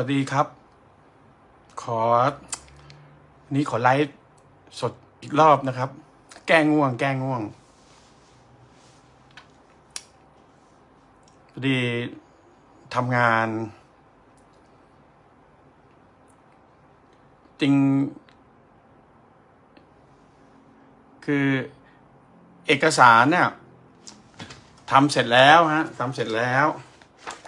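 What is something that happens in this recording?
A middle-aged man speaks calmly and close to the microphone, in short phrases with pauses.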